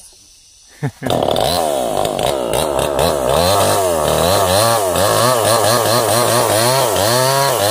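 A chainsaw cuts through a log with a loud, steady buzz.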